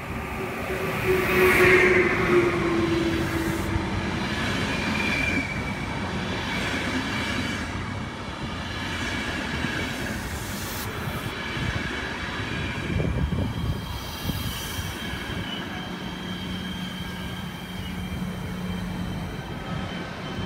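Train wheels screech and squeal on the rails.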